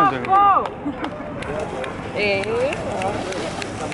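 A swimmer splashes in the water.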